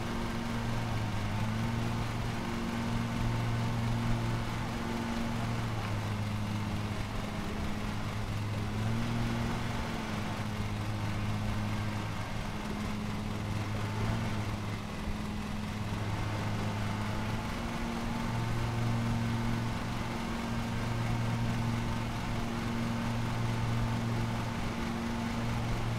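A lawn mower engine hums steadily while cutting grass.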